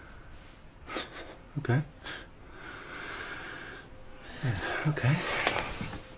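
A man speaks softly and briefly.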